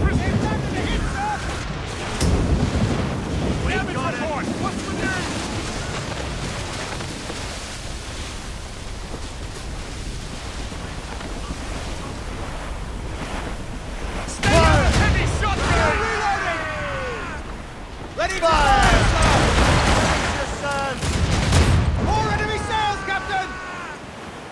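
Rough sea waves crash and rush.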